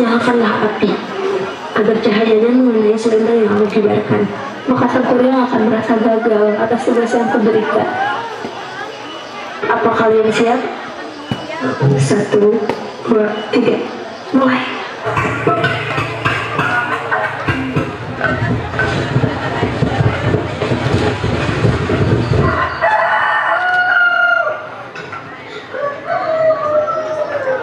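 Young performers speak their lines through a loudspeaker outdoors.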